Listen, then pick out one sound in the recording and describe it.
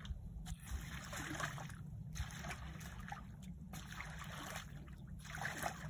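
A rake scrapes through wet mud and gravel.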